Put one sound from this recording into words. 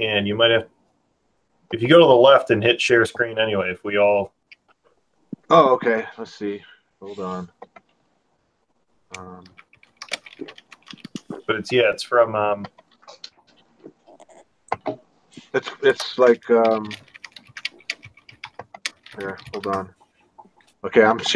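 Several men talk in turn over an online call.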